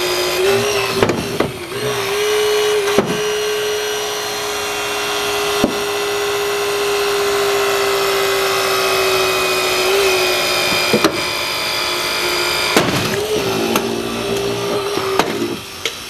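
Car door metal cracks and pops under the tool.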